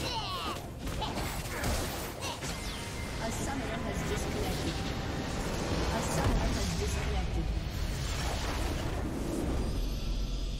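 Spells and blows clash in a busy fantasy battle.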